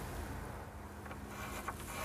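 A pencil scratches along a board.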